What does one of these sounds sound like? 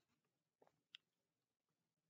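A young man speaks quietly, close to the microphone.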